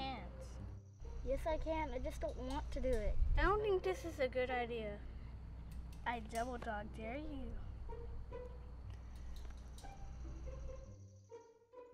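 A younger boy answers, straining and upset, close by.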